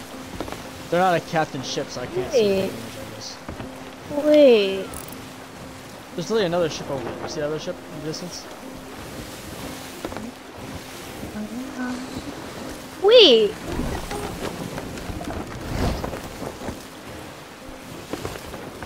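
Rough sea waves crash and wash against a wooden ship.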